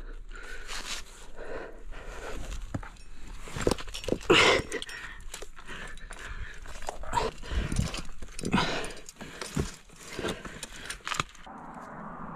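Clothing and skin scrape and brush against rough rock up close.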